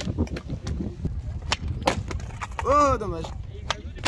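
A skateboard's wheels roll and clack on concrete.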